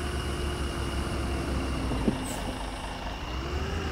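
A bus's air brakes hiss as it stops.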